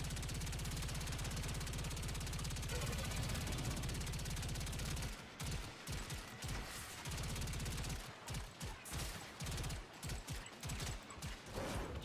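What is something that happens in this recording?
Rapid gunfire rattles steadily.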